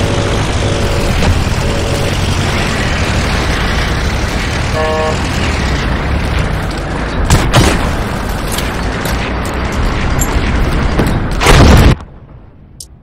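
A heavy vehicle engine rumbles steadily.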